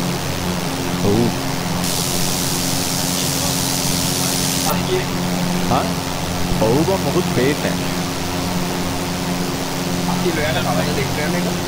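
A young man speaks into a headset microphone.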